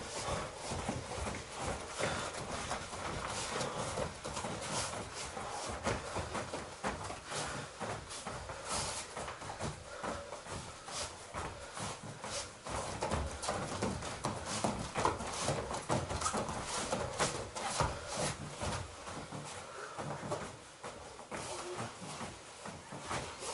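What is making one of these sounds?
Bare feet shuffle and thump on foam floor mats.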